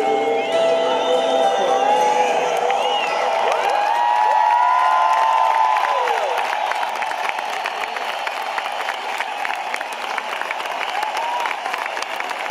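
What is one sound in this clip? A large crowd cheers and whistles loudly in a big echoing hall.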